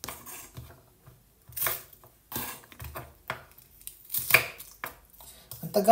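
A knife chops vegetables on a wooden board.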